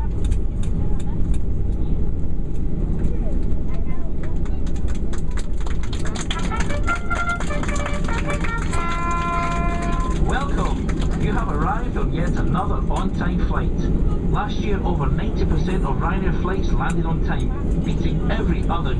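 Jet engines roar steadily from inside an airliner cabin.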